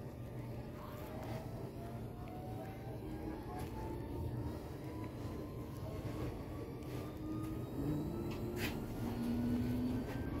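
An electric motor whines, slowly rising in pitch.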